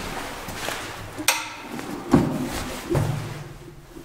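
A lift door clanks open.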